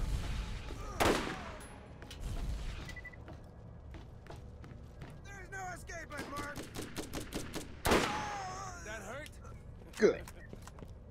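Rifle shots crack sharply a few times.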